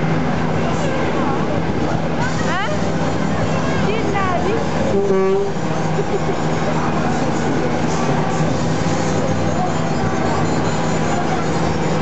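A fairground ride's machinery rumbles and hums steadily.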